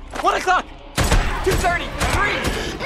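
A man fires a pistol.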